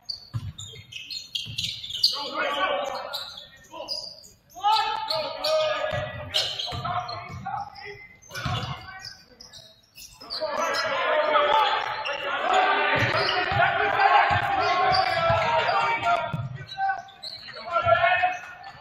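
Sneakers squeak on a wooden court.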